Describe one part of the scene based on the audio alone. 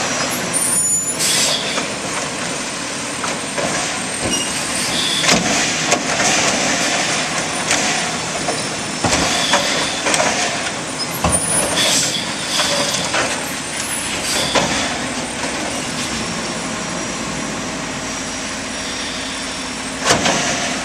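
A garbage truck engine rumbles and whines steadily close by.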